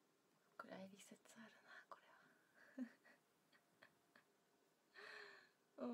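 A young woman laughs lightly.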